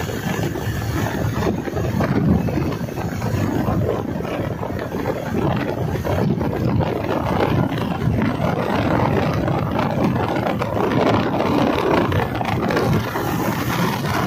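A motorcycle engine runs.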